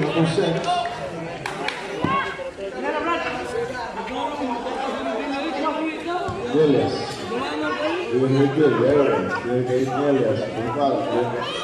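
A crowd of spectators chatters and cheers loudly nearby.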